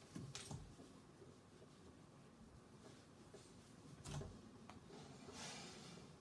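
A cloth wipes across a whiteboard.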